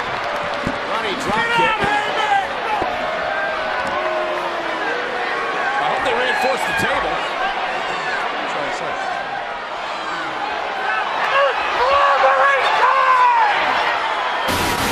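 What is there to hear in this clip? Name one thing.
A man shouts excitedly nearby.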